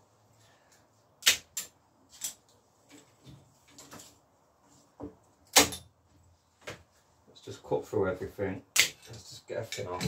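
Metal bicycle parts click and clank as they are handled.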